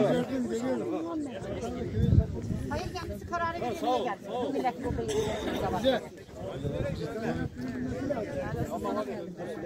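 Several men and women talk over one another outdoors, close by.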